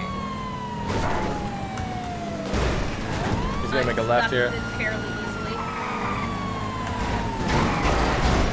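A car crashes with loud thuds.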